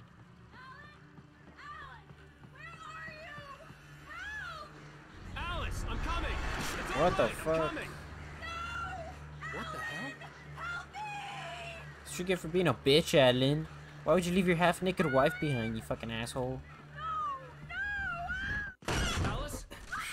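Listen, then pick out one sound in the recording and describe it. A woman's voice calls out in distress through game audio.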